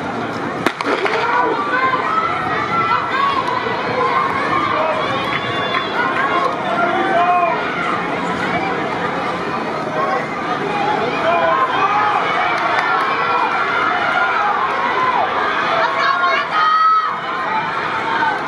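A crowd of spectators cheers and shouts throughout.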